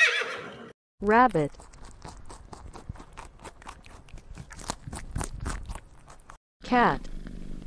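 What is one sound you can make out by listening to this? Rabbits crunch on dry food pellets.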